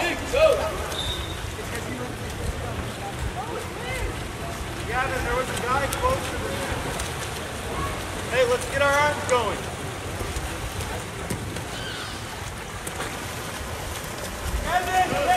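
Spectators shout and cheer outdoors at a distance.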